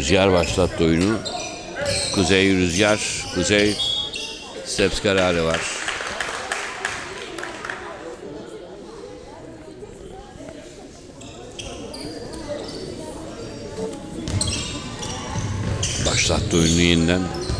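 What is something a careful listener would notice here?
Sneakers squeak on a hardwood floor in an echoing hall.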